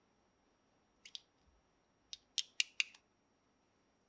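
Plastic toy pieces click and snap together.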